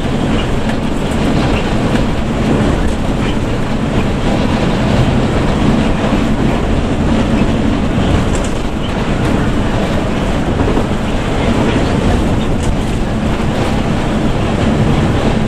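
Tyres roar on the road at speed.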